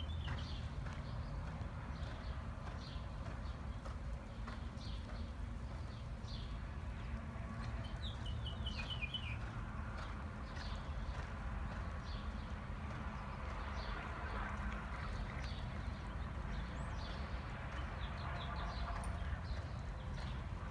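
A horse's hooves thud on soft dirt in the distance.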